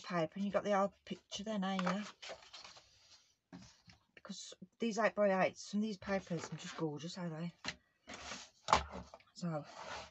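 Paper and card rustle and slide as they are handled.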